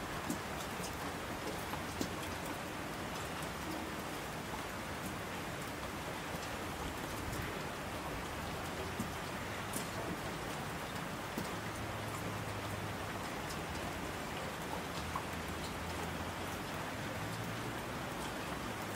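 Rushing streams roar down slopes.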